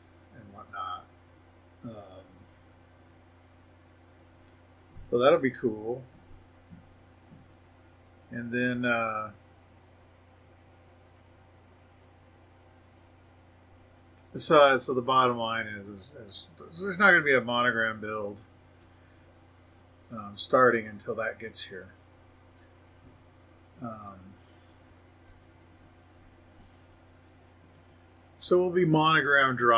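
A middle-aged man talks calmly into a microphone, in short bursts with pauses.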